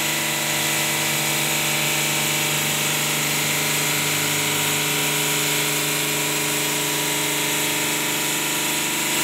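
A large stone-cutting saw whines steadily as it cuts through stone.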